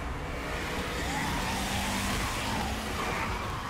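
A car engine rumbles nearby.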